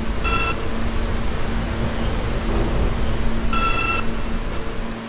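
A subway train's door chime rings twice.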